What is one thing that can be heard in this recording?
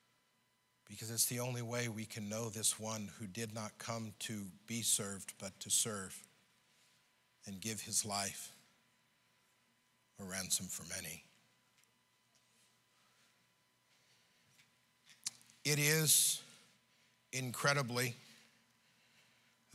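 A middle-aged man speaks with animation through a microphone, pausing often.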